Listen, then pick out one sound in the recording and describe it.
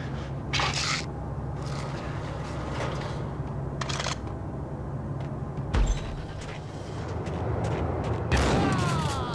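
Gunshots boom and echo in a large hard hall.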